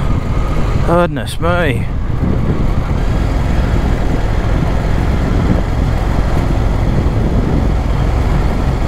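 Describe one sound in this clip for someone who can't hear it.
Wind buffets and rumbles steadily outdoors.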